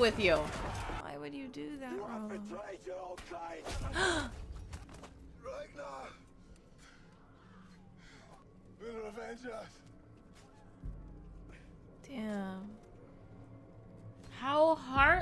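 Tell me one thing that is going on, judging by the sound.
A young woman cries out in dismay close to a microphone.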